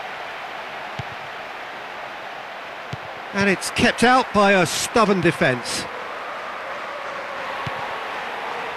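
A football is kicked with a dull thud now and then.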